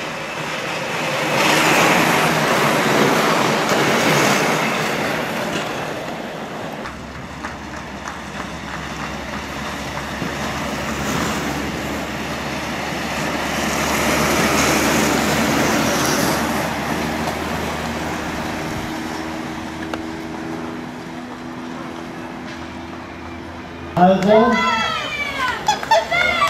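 Inline skate wheels roll and hum over asphalt.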